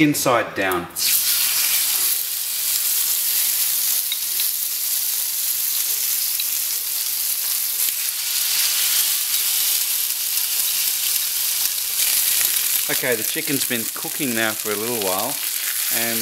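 Chicken sizzles loudly on a hot griddle.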